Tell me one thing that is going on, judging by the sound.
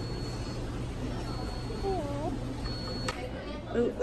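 Water trickles steadily from an aquarium filter.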